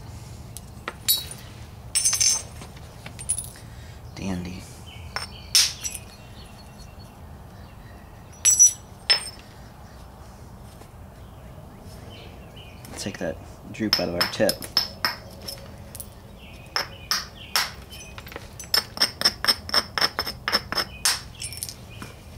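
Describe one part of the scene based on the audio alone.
A stone hammer taps and clicks sharply against a stone flake.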